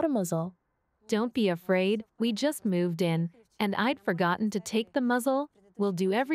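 A young woman speaks earnestly close by.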